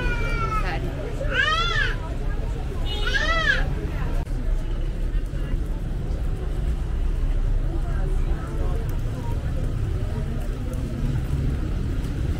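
A crowd of men and women chatters nearby outdoors.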